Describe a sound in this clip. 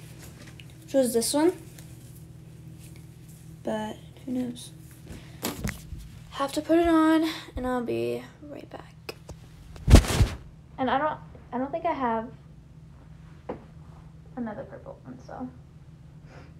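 A young woman talks close to the microphone in a lively, casual voice.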